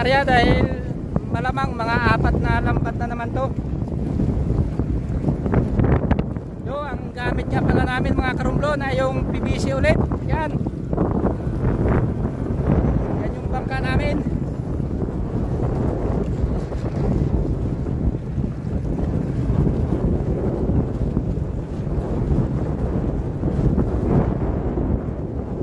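A boat's outboard motor rumbles steadily.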